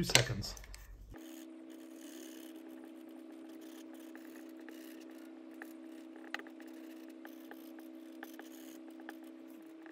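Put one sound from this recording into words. A marker squeaks and rubs on paper.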